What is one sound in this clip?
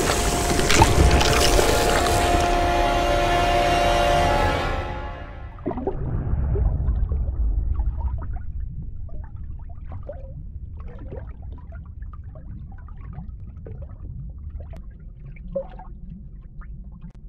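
Water rumbles low and muffled underwater.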